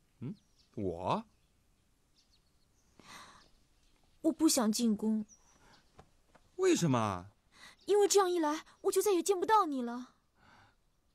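A young man speaks with feeling close by.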